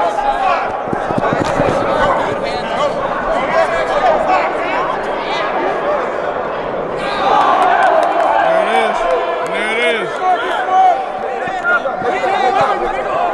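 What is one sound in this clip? A crowd of people chatter and shout in a large echoing indoor hall.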